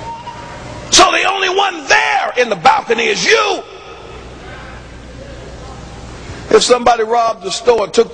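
A man preaches forcefully through a microphone.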